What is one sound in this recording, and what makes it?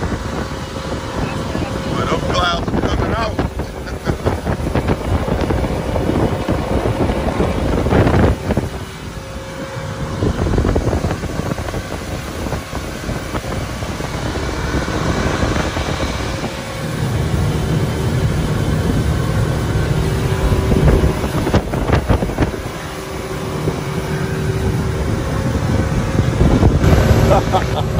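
Wind rushes loudly past outdoors.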